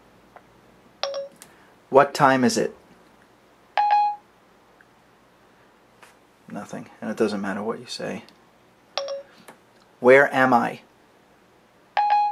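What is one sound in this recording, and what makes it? A phone chimes with short electronic beeps.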